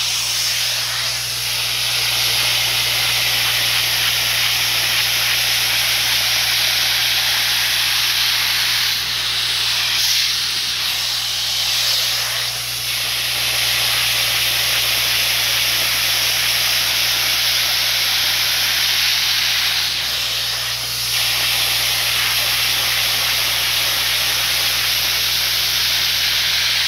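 An upholstery cleaner's motor whines loudly and steadily.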